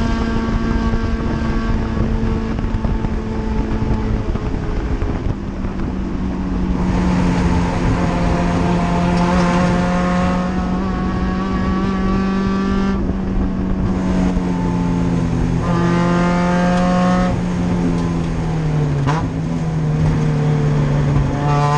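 A race car engine roars loudly from inside the cabin, revving up and down through the gears.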